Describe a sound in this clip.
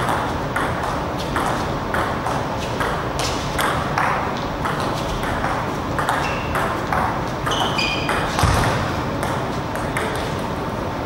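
A table tennis ball clicks back and forth in a quick rally, echoing in a large hall.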